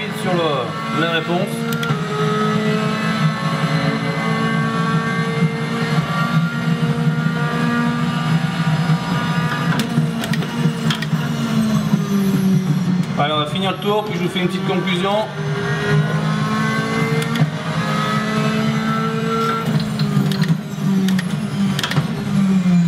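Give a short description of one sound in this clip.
A racing car engine roars through loudspeakers, its pitch rising and dropping with each gear change.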